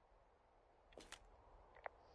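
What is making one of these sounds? A handheld radio clicks.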